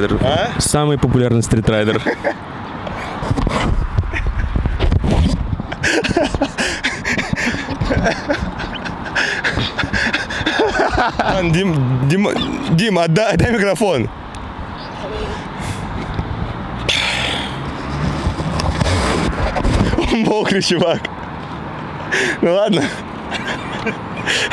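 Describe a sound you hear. A young man talks with animation close to a handheld microphone outdoors.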